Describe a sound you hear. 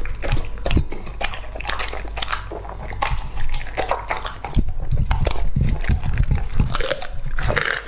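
A dog licks a plate wetly.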